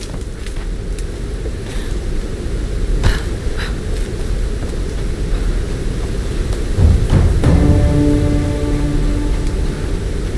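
Footsteps crunch on grass and rock.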